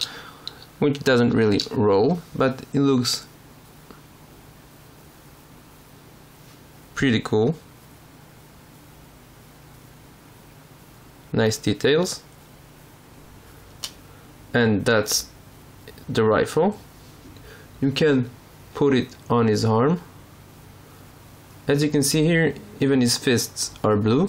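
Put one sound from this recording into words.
Small plastic toy parts click softly as they are handled.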